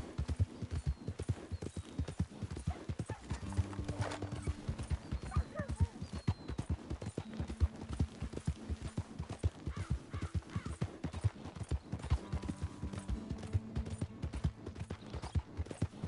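Birds chirp now and then.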